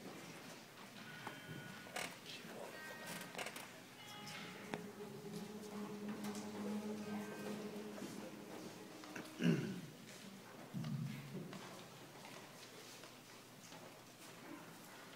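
A group of young singers sings together in a large hall, heard from the audience.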